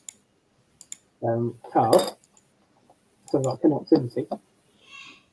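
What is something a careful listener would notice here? A small board clicks against a desk as hands set it down.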